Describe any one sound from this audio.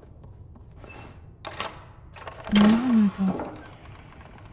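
A door handle rattles and creaks loudly.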